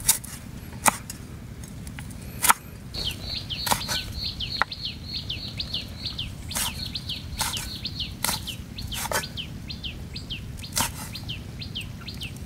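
A cleaver chops sharply on a wooden block outdoors.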